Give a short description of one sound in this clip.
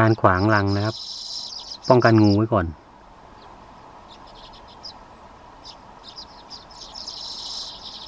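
A small bird chirps and twitters rapidly close by.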